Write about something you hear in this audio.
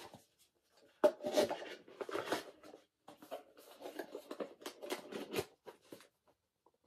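Paper rustles and crinkles as pages are handled.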